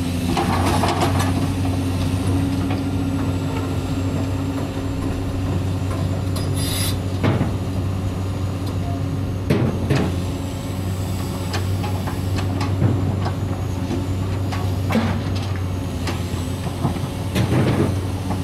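A diesel excavator engine rumbles steadily nearby.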